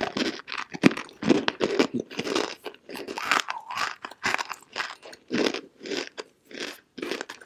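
A young woman crunches and chews something brittle close to a microphone.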